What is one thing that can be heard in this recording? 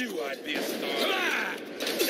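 A gun fires with sharp loud bangs.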